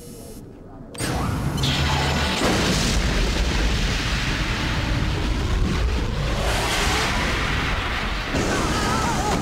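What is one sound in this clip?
A huge explosion roars and rumbles on.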